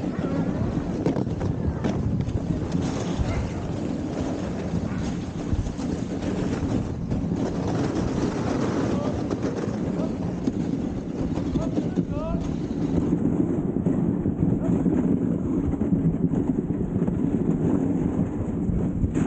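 A sled's runners hiss and scrape steadily over snow.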